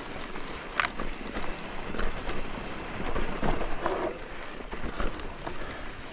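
A bike rattles and clunks over bumps.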